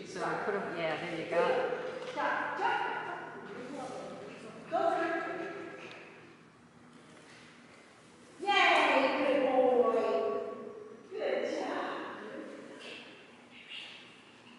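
A woman calls out with excitement in a large echoing hall.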